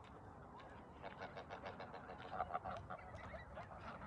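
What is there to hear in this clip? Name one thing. A flock of geese honk and cackle nearby.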